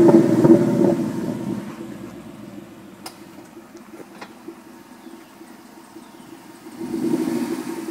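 A car engine idles with a deep, throaty rumble.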